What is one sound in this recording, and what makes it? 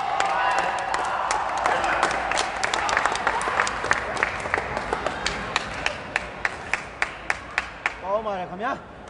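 A crowd claps in a steady rhythm.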